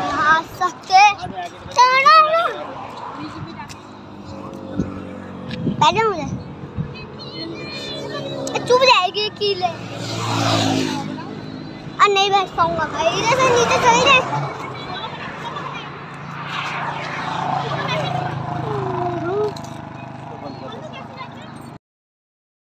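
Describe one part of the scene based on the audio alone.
A young boy talks with animation, close by.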